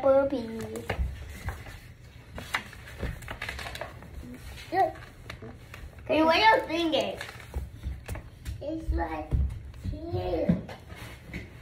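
A child talks and shouts excitedly nearby.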